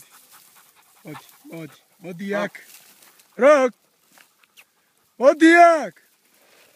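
A dog rustles through dry tall grass.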